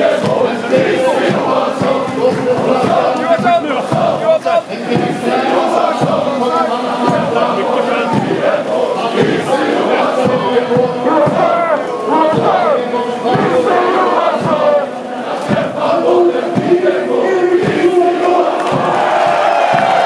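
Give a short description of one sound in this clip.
A large stadium crowd sings and chants loudly all around.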